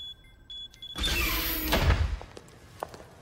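A heavy door slides open with a loud whoosh.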